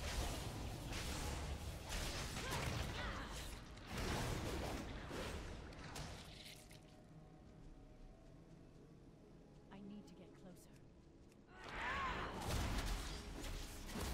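Spell effects whoosh and crackle in a game fight.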